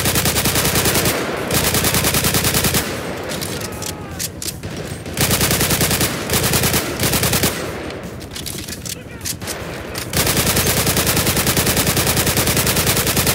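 A rifle fires in rapid bursts, loud and close.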